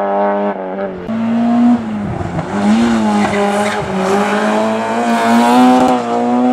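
A second rally car engine snarls and revs up close as the car passes.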